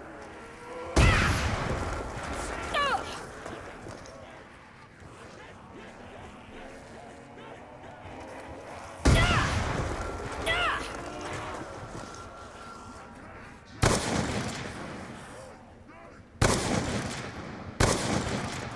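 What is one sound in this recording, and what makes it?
Loud blasts boom and roar, then ring out.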